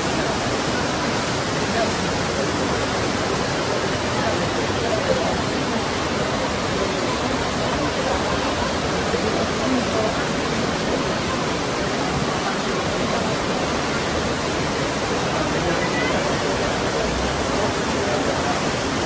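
Floodwater rushes and roars loudly outdoors.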